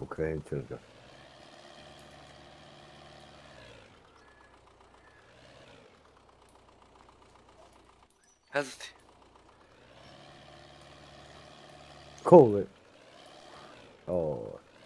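A tractor engine idles and hums steadily.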